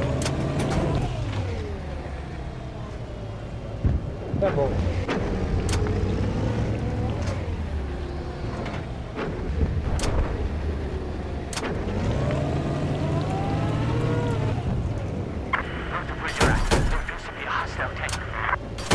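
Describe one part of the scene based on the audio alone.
An armoured vehicle's engine rumbles and whines steadily.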